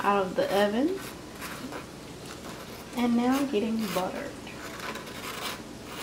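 A spoon scrapes softly over bread.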